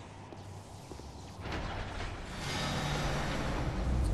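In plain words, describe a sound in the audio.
A heavy metal lever clanks and grinds.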